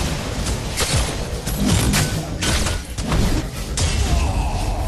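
Gunfire and magical blasts crack and boom in rapid bursts.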